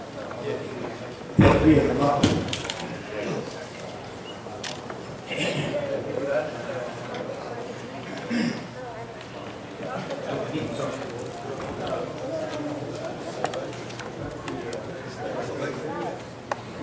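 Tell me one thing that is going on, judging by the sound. Feet shuffle on a carpet as people stand up and move.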